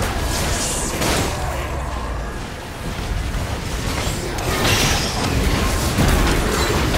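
Game spell effects whoosh and crackle in quick bursts.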